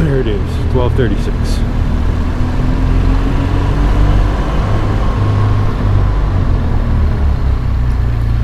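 Wind rumbles loudly against a helmet microphone.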